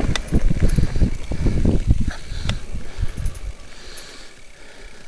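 A mountain bike rattles and bumps over a rocky dirt trail.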